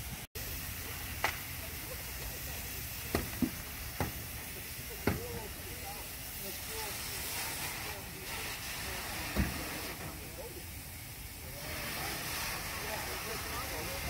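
Men talk outdoors.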